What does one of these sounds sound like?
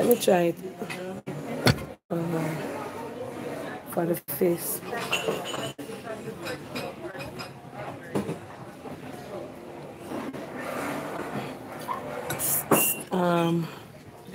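A young woman speaks close up, in a lively, chatty way.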